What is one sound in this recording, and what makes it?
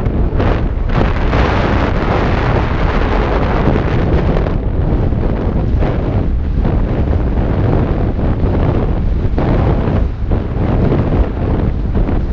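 Wind roars past loudly outdoors.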